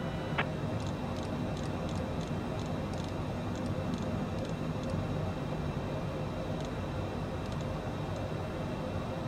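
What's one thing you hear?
A knob clicks repeatedly as it is turned.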